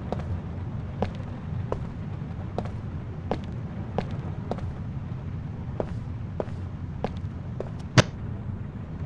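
Footsteps tread slowly across a hard floor.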